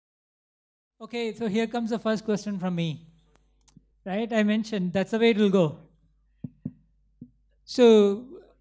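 A man speaks into a microphone over a loudspeaker in a hall.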